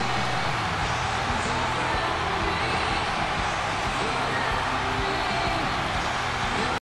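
A large arena crowd cheers and roars steadily.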